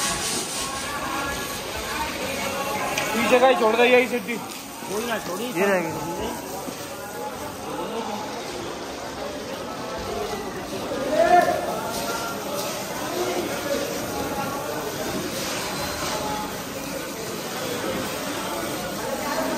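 Brooms sweep and scrub a wet floor.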